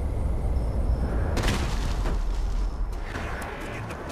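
A character lands hard on the ground with a thud.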